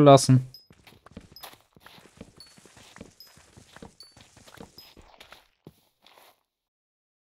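Wood is chopped with quick, soft knocks.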